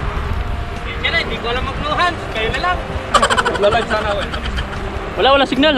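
A man calls out nearby over the wind.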